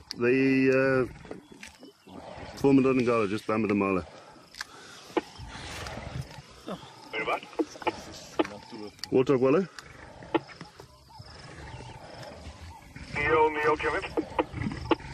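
Lions growl and snarl close by.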